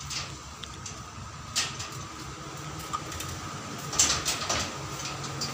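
A man knocks on a door.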